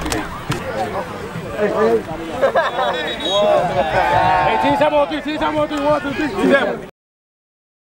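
A crowd of young men chant together in a huddle.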